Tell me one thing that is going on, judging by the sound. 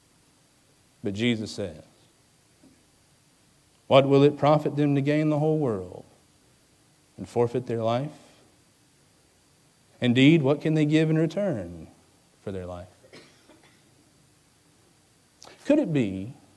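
A man speaks slowly and deliberately into a microphone, with long pauses.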